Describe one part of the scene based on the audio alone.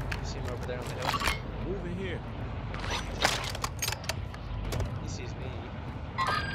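Gun parts click and clack as a rifle is handled.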